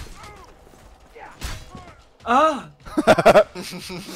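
A sword strikes with a heavy thud.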